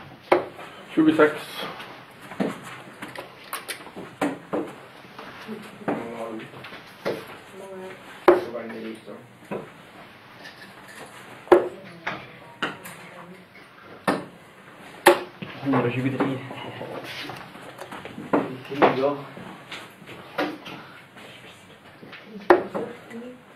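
Darts thud sharply into a board.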